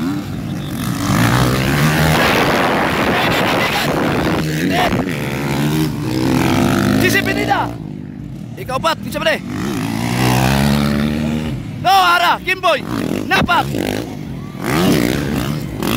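Dirt bike engines roar and rev loudly close by.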